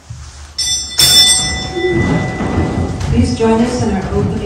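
A man sings a hymn in a reverberant hall.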